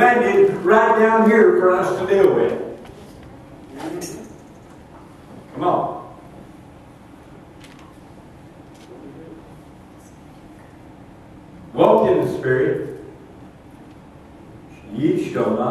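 An elderly man preaches with animation through a microphone, with long pauses.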